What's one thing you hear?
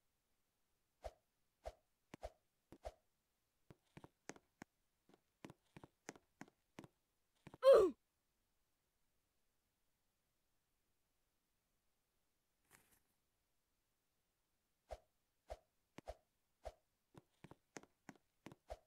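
Short game blips pop in quick bursts.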